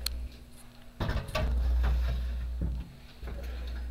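A metal tray slides into an oven.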